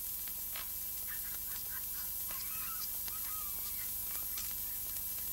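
A man chuckles softly.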